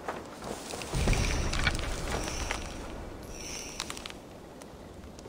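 Leafy bushes rustle as someone pushes through them.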